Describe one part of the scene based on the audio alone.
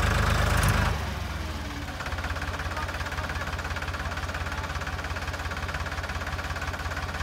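A tractor engine chugs and rumbles nearby.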